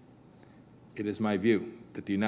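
A man speaks into a microphone through loudspeakers in a large hall.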